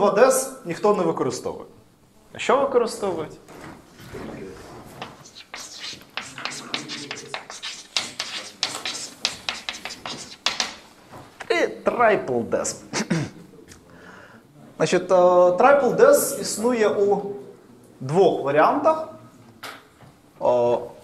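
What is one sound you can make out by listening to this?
A man lectures with animation in an echoing room.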